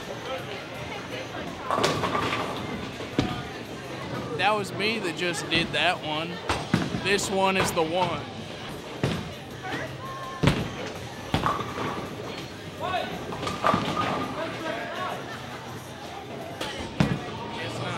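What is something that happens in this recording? Knocks and clatter echo through a large, busy bowling hall.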